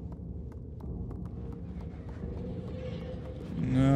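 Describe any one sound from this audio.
Light footsteps tap across a wooden floor.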